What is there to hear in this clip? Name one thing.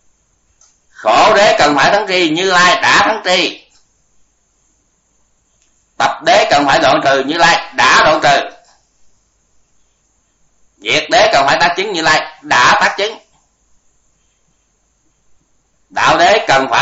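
An elderly man speaks calmly and slowly into a microphone, in phrases with pauses.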